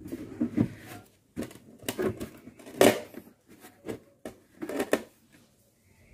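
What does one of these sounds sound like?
A plastic tub knocks and rattles as hands handle it.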